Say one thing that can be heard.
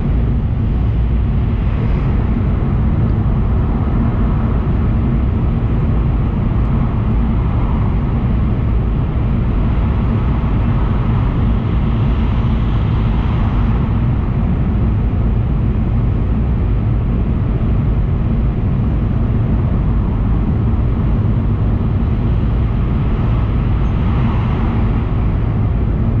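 Clothing brushes and rustles right against the microphone with a steady low rumble.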